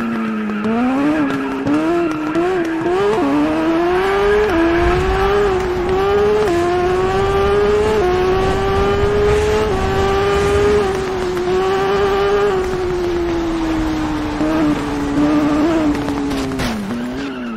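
A motorcycle engine revs hard, rising in pitch through the gears.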